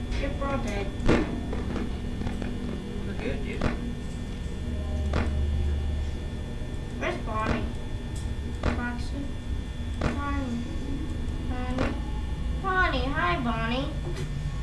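A young boy talks quietly and nervously close to a microphone.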